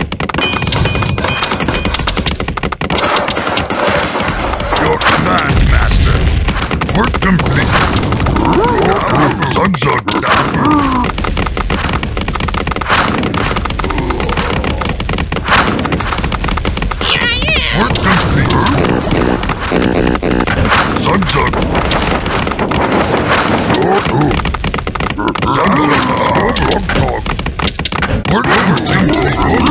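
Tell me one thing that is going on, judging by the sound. Video game sound effects clank and thud in quick succession.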